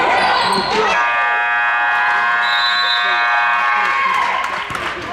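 A referee blows a long whistle blast.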